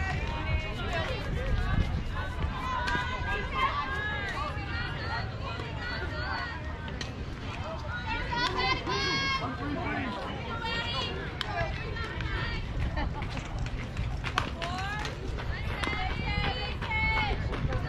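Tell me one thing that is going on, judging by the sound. Young girls shout and cheer loudly nearby.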